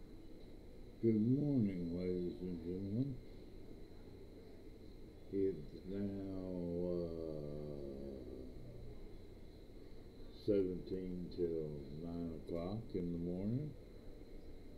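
An elderly man speaks close to a microphone, in short bursts with pauses.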